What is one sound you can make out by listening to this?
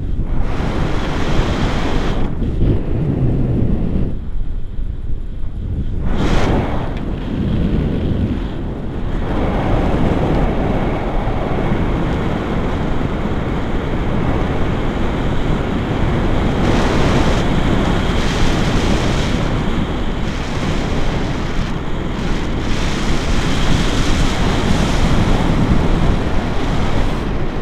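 Strong wind rushes and buffets loudly against the microphone.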